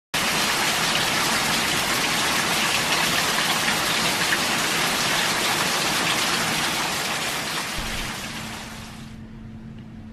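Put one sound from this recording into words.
Heavy rain patters steadily on leaves.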